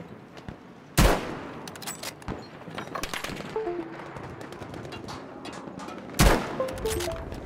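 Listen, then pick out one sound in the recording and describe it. A rifle fires loud, sharp shots that echo.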